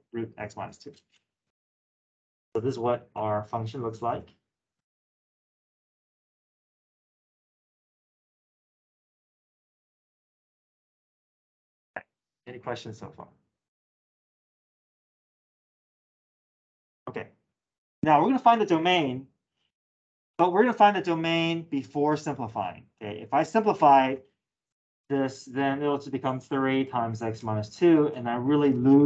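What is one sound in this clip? A man explains calmly over an online call, in short bursts with pauses.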